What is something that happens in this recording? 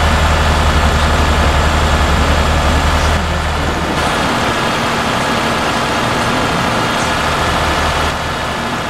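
Tyres roll with a steady hiss on the road.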